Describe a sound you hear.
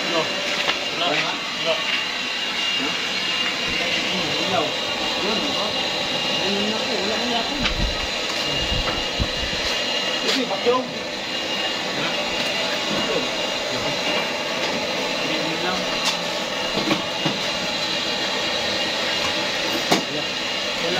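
Metal tools clink and knock.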